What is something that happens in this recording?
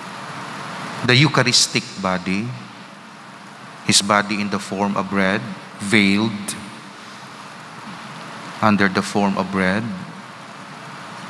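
A man speaks calmly and slowly through a microphone, with pauses, in an echoing hall.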